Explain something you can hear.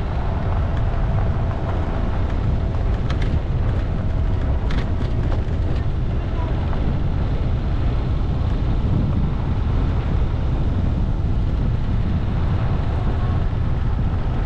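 Tyres crunch and rattle over gravel.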